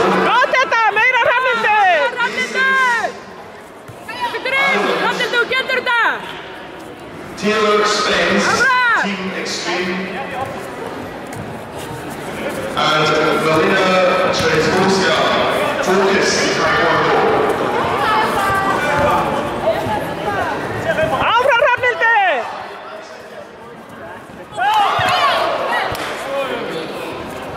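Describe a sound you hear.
Young fighters shout sharply and loudly in an echoing hall.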